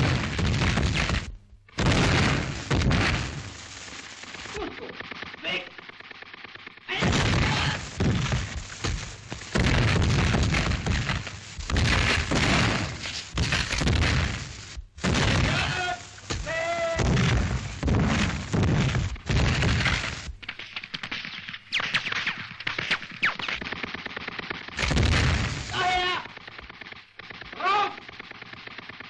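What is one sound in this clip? Explosions boom again and again close by.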